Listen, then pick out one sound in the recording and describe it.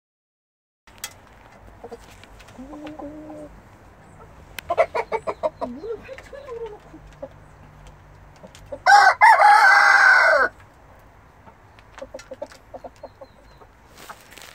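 Chickens cluck and squawk close by.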